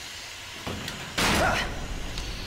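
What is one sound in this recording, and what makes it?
A metal locker door bangs open.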